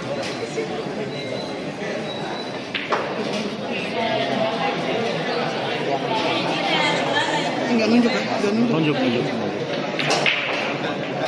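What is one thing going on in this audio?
Pool balls clack together on a table.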